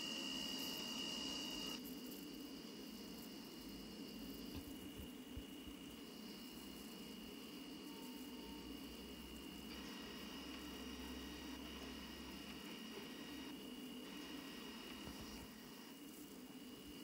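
A tram rolls along its rails with a steady electric whine.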